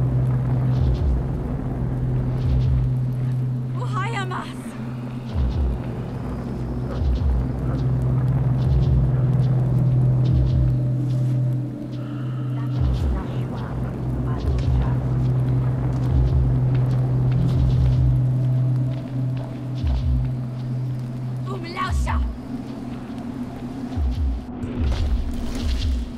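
Footsteps crunch through snow and dry grass.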